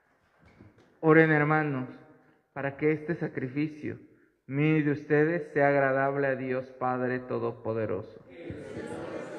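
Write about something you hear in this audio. A man chants in a steady voice through a microphone.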